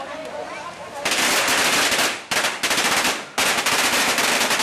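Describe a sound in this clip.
Firecrackers crackle and pop rapidly at close range.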